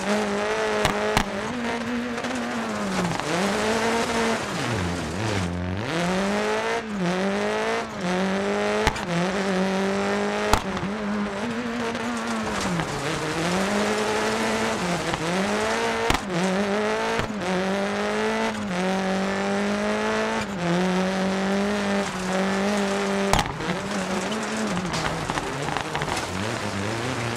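Gravel sprays and crunches under spinning tyres.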